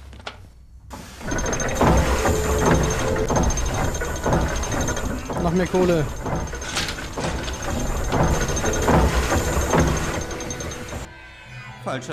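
A large machine rumbles and clanks.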